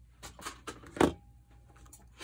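A small book taps down onto a table.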